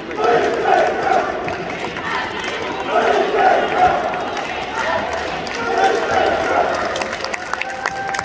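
A small crowd of fans chants and cheers loudly in a large echoing hall.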